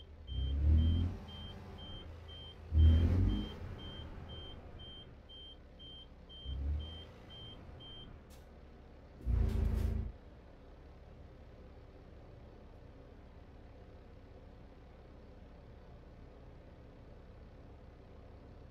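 A diesel truck engine idles while reversing slowly.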